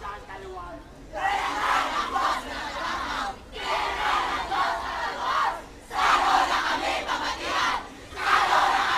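A large crowd cheers and shouts in loud bursts outdoors.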